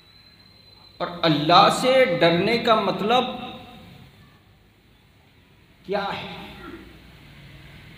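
A man speaks emphatically through a microphone in an echoing room.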